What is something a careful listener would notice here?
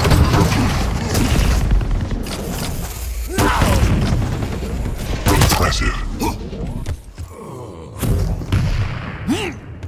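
An energy gun in a video game fires shot after shot.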